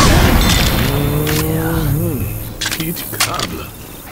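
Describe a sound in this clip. A rifle clicks as it is reloaded.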